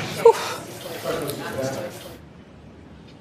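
A young woman talks nearby.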